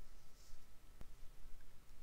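A small plastic counter clicks once.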